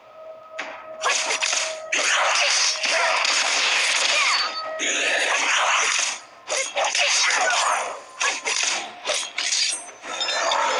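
Sword blows and magic blasts crash rapidly in a fight.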